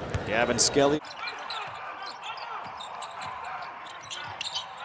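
A basketball bounces on a wooden floor with dull thuds.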